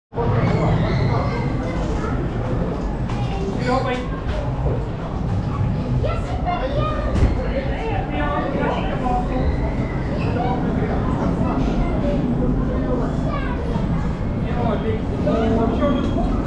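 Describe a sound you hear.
A ride car rumbles steadily along a track.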